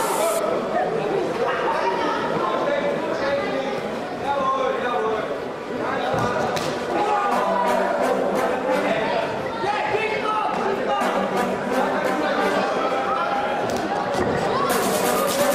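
Boxers' shoes shuffle and squeak on the ring canvas.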